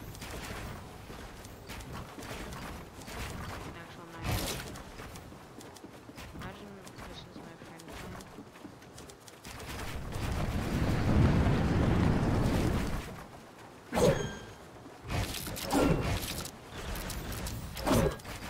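Wooden walls and ramps clatter as they are built in quick bursts.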